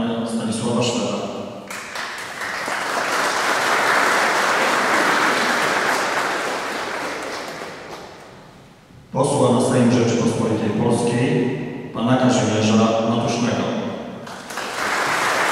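A man speaks formally through a loudspeaker in a large echoing hall.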